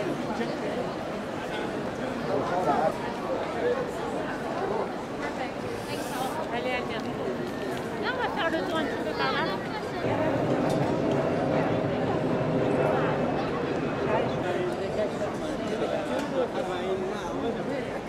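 A large outdoor crowd chatters all around, many men and women talking at once.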